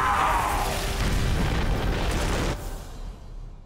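A loud burst roars and rushes, then dies away.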